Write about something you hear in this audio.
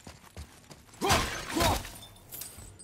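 An axe swings with a sharp whoosh and strikes.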